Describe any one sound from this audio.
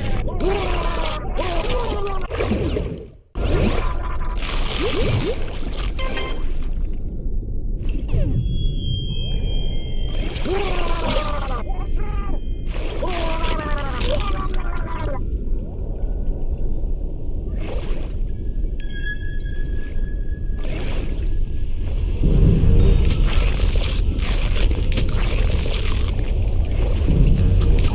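A shark chomps on prey with wet, crunching bites.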